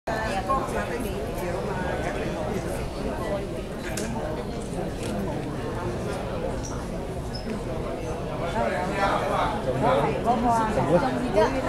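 Music plays through loudspeakers in a large hall.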